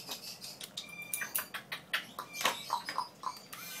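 Nail clippers click sharply several times.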